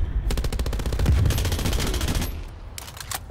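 A submachine gun fires in bursts.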